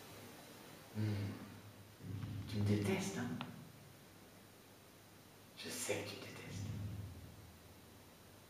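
A young man chuckles and speaks softly.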